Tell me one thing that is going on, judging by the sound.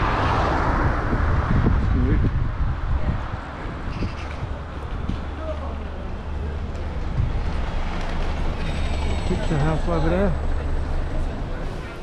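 Wind rushes past a moving rider.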